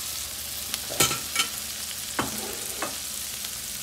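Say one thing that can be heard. Chopped vegetables tumble into a pan with soft thuds.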